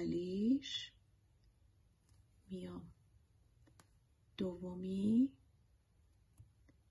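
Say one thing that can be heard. Metal knitting needles click softly together.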